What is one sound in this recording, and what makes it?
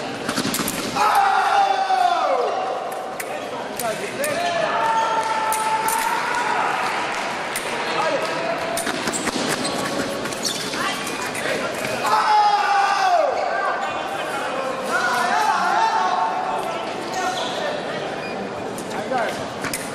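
Sports shoes squeak sharply on a hard floor as fencers step and lunge.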